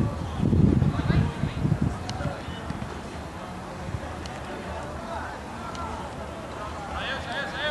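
Young men shout and call out across an outdoor pitch.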